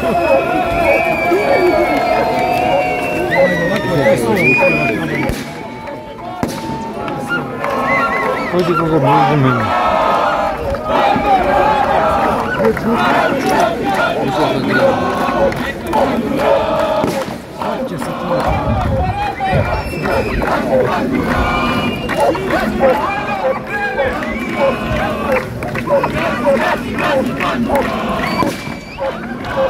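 A crowd of people talks and chatters outdoors.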